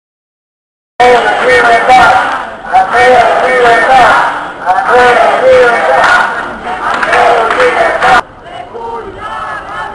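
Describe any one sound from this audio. A large crowd chants loudly in unison outdoors.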